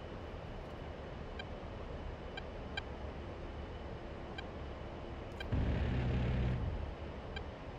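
A jet engine drones steadily.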